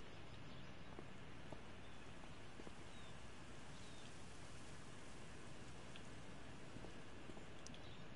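Footsteps fall softly on pavement.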